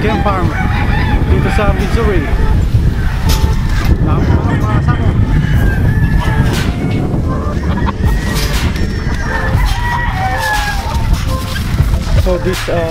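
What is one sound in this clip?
Many roosters crow and cluck all around.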